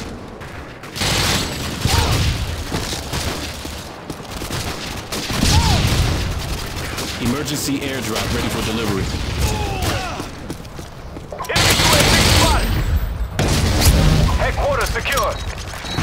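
Rifle gunfire cracks in short bursts.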